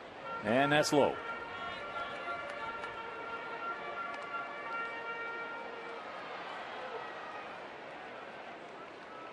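A large crowd murmurs steadily in the distance.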